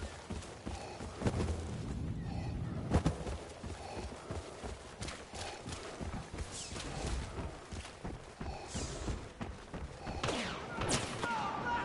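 Heavy footsteps thud steadily on the ground.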